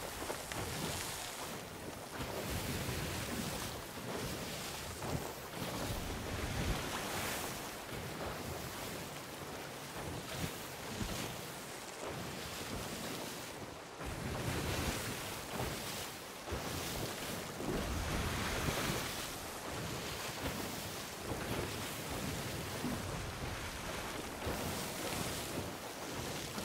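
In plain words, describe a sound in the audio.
Waves crash and surge against a ship's hull.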